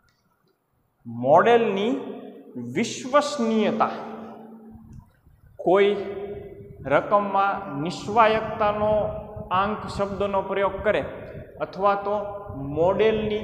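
A young man speaks calmly through a clip-on microphone.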